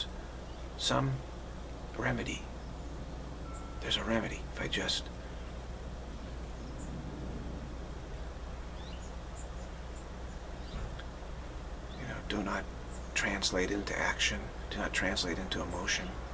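A middle-aged man speaks calmly and close up, with long pauses.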